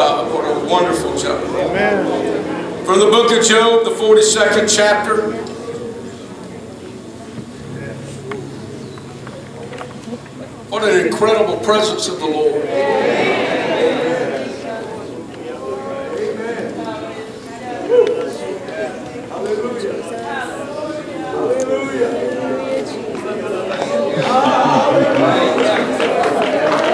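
A man preaches with animation through a microphone and loudspeakers in a large echoing hall.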